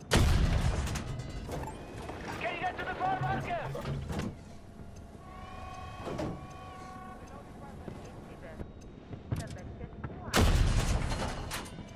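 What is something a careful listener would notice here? A tank cannon fires with a loud, booming blast.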